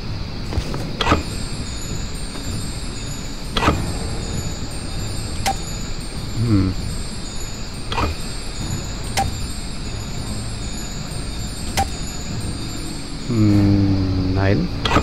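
Heavy metal pipes clank and grind as they swing into place.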